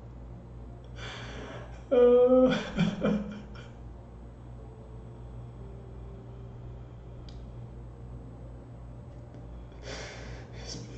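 A man groans and cries out, close to a microphone.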